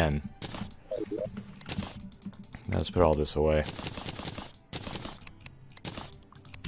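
Short video game sound effects click and pop.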